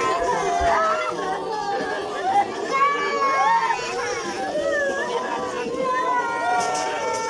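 A crowd of men and women wails and sobs close by.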